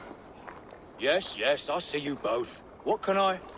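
A man speaks quickly and with animation, up close.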